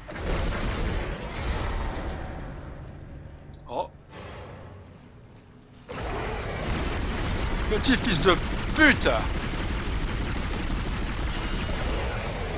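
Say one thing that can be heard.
A sci-fi gun fires in short bursts.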